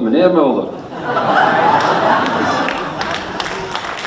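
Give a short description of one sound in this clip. A crowd laughs.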